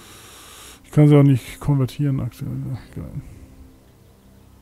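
A man speaks into a microphone with animation, close up.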